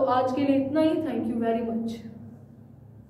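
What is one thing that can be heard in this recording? A young woman speaks clearly and calmly into a nearby microphone.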